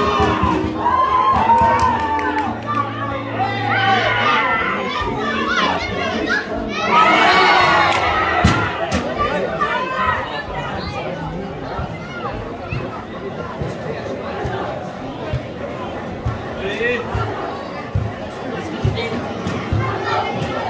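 Spectators talk and call out nearby, outdoors.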